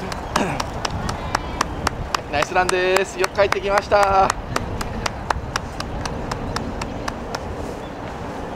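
Running footsteps slap steadily on pavement nearby.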